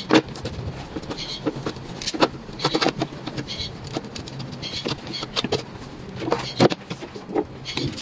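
A sponge scrubs squeakily over glass.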